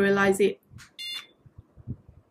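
A small device beeps briefly.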